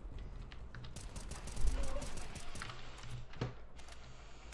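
A rifle fires a quick series of loud shots.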